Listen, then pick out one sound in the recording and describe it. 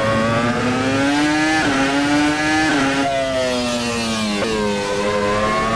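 A racing car engine screams at high revs, rising in pitch.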